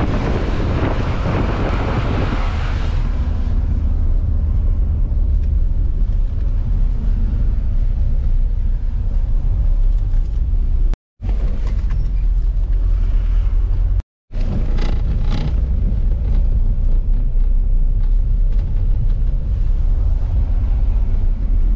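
A vehicle engine rumbles steadily from inside the cabin.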